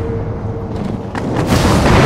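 Flames burst and crackle close by.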